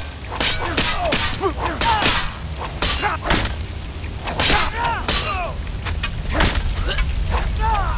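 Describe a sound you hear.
A fire spell roars and crackles.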